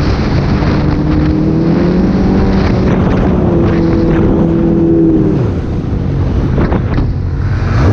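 Another snowmobile engine hums nearby.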